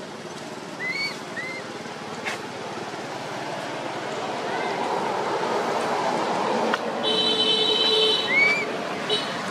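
A baby monkey gives short high squeaks.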